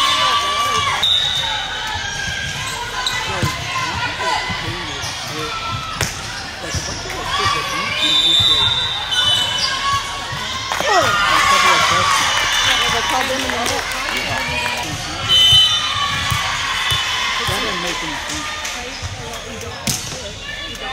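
A volleyball thumps as it is hit.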